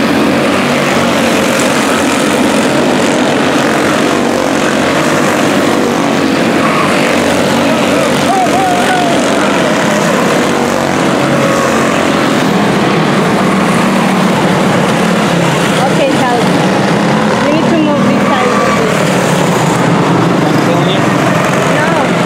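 Several small kart engines buzz and whine loudly as they race past close by.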